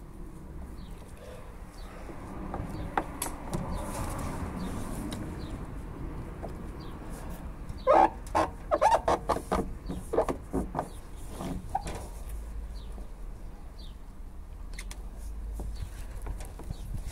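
Fingers press and tap against a plastic car bumper trim.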